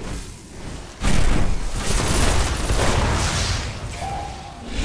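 A rifle fires in rapid bursts with loud blasts.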